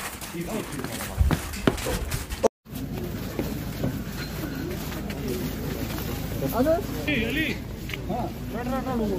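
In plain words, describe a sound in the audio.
Several men talk at once in a jostling crowd close by.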